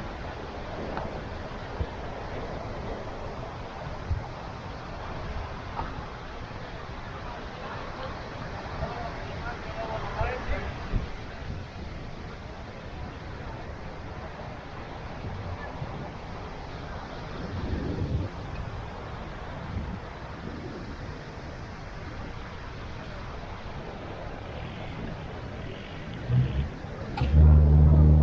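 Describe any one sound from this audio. Waves break and wash onto a beach.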